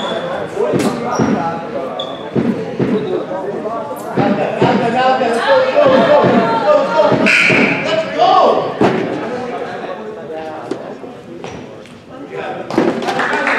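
Young men talk and call out nearby, echoing in a large hall.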